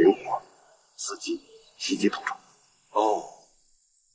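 Another middle-aged man replies in a low, serious voice.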